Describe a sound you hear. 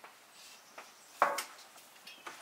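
A metal pan knocks against a wooden table.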